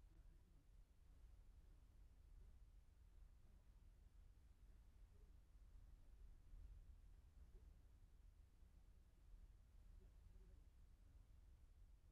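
A car drives slowly past nearby.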